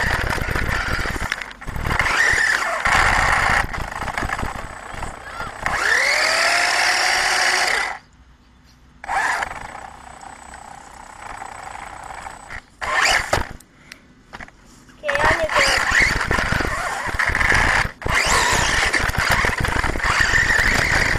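A small electric motor whines, rising and falling in pitch as a toy car speeds over grass.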